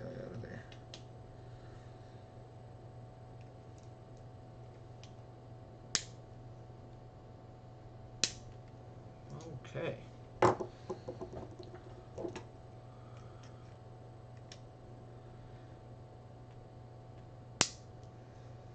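Small metal parts click and clink as hands work on them.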